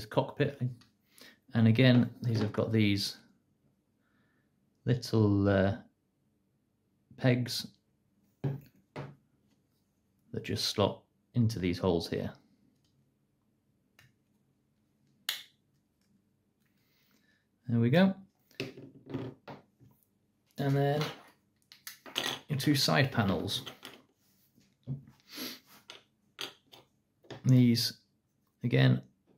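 Small plastic parts click and tap against each other.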